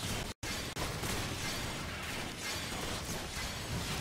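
Rapid gunfire rattles and blasts.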